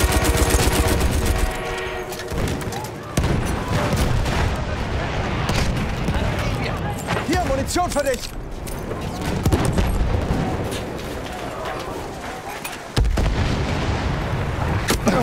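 Gunfire cracks in rapid bursts.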